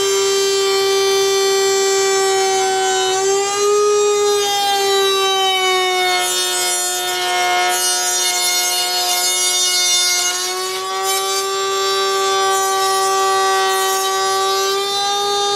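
A router motor whines steadily, its pitch dipping as it cuts.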